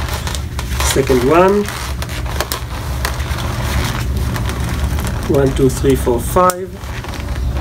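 Latex balloons squeak as they are twisted.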